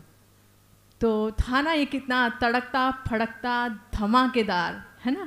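A woman sings into a microphone, heard through loudspeakers.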